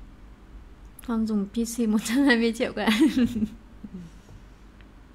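A young woman speaks briefly and clearly into a microphone.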